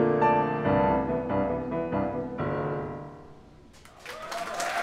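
A piano plays a lively passage.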